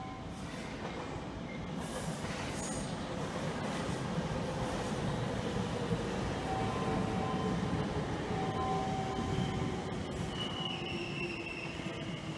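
An electric train rolls along the tracks outdoors and draws into a station.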